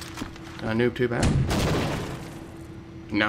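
A gun fires a loud burst.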